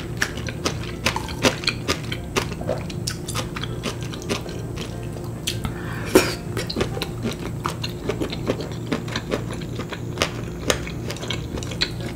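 A young woman chews and slurps noodles loudly and close to a microphone.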